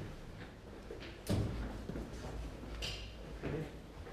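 A heavy door opens.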